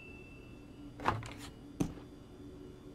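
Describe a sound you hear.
A microwave door clicks open.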